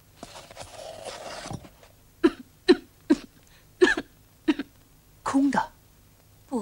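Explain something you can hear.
A stringed instrument is plucked in short, sharp notes.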